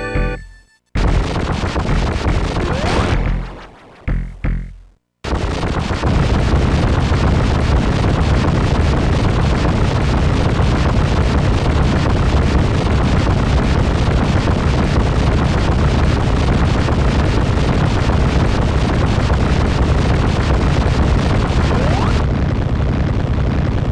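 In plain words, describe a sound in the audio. A loud, harsh electronic rumble roars steadily.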